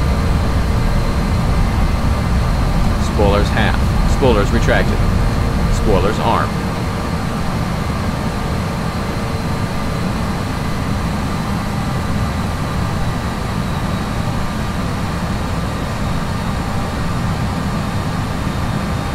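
A jet engine drones with a steady low rumble.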